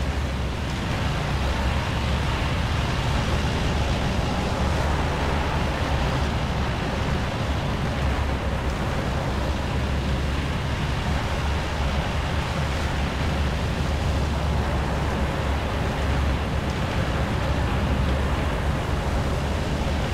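Tank tracks rumble and clatter over dirt.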